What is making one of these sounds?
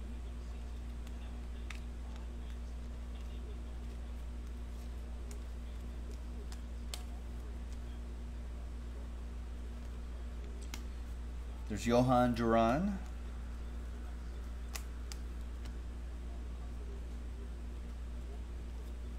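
Trading cards click and slide softly as they are shuffled by hand.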